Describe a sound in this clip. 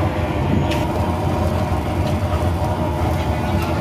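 A ladle stirs a thick stew in a metal pot.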